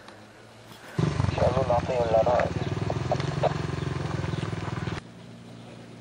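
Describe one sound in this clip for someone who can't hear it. A motorbike engine roars past nearby.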